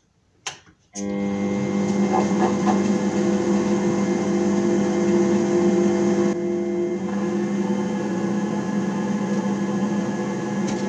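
A lathe motor starts and hums steadily with a whining drone.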